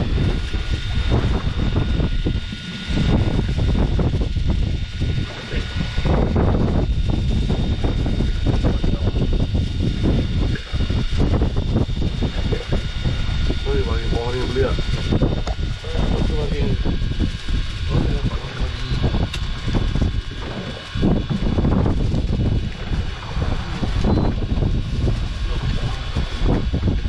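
A boat's engine rumbles steadily throughout.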